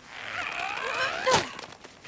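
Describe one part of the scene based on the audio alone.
A young boy laughs.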